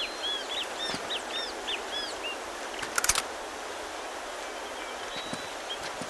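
Footsteps crunch over leaves and earth.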